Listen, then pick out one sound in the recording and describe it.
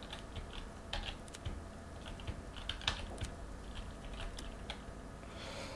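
A lock clicks and rattles as it is picked.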